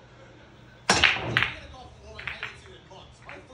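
A cue ball smashes into racked pool balls with a loud clattering break.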